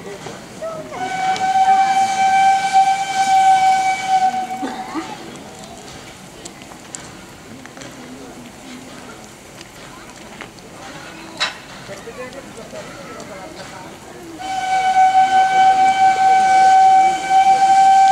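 A steam locomotive whistle blows loud and long.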